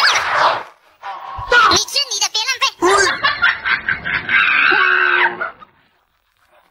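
A man exclaims with animation close by.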